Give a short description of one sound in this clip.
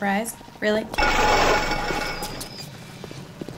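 An electric bolt crackles and buzzes.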